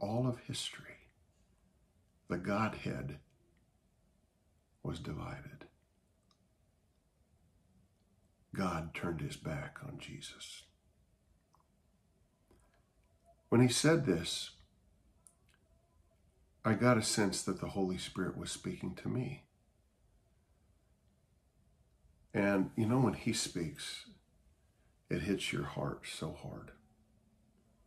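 A middle-aged man talks calmly and close to a microphone, in short phrases with pauses.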